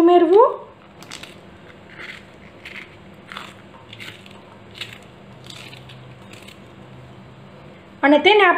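A knife snips through a green chili with soft clicks.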